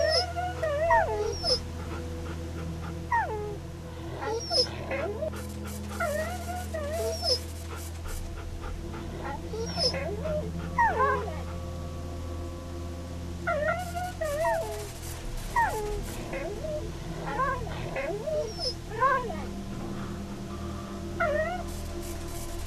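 Dogs bark repeatedly, close by.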